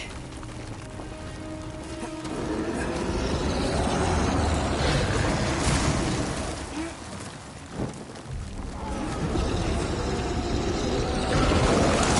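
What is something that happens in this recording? Armoured footsteps clank and scrape on stone.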